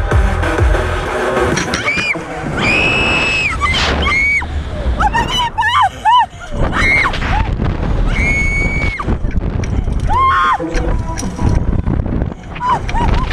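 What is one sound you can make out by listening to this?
Two young women laugh.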